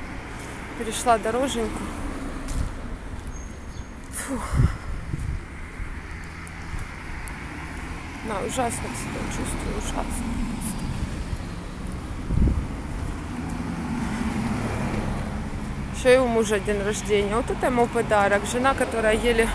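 A young woman talks close to the microphone.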